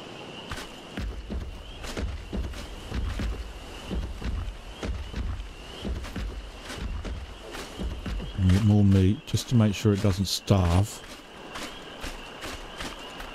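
Footsteps tramp through grass and undergrowth.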